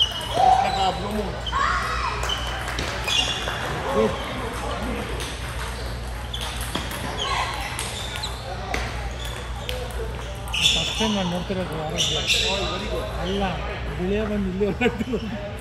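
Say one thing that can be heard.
Table tennis balls click sharply off paddles and tables.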